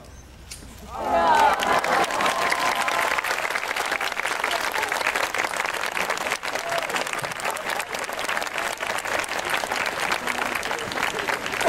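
A crowd applauds and cheers outdoors.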